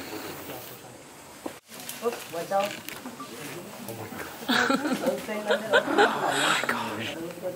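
Leaves and branches rustle as an orangutan climbs and swings through a tree.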